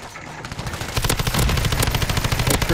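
A rifle fires rapidly in short bursts.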